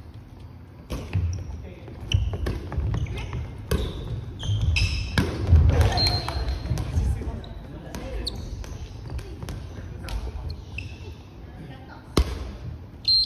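A ball is struck with a hard slap.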